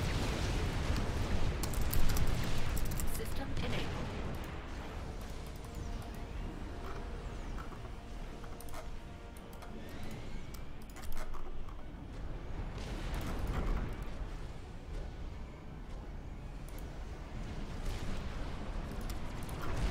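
Weapons fire and small explosions thud in a battle.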